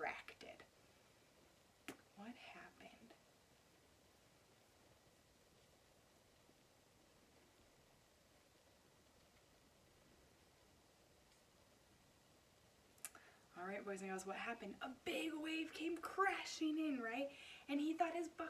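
A young woman speaks close by, briefly at first and then with animation.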